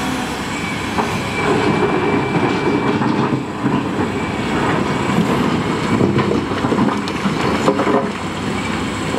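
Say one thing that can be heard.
Rocks clatter and scrape as a digger bucket scoops them.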